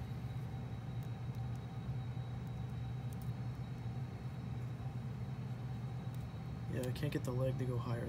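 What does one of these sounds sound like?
Plastic joints of a toy figure click softly as they are bent.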